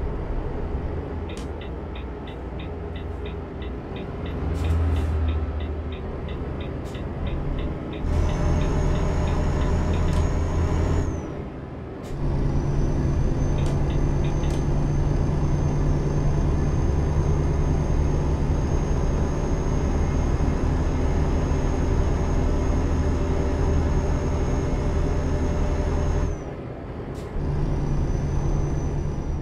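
A diesel truck engine drones while cruising on a highway.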